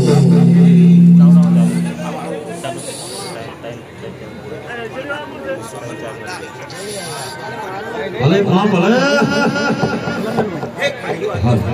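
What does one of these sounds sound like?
A large crowd murmurs and chatters in the background.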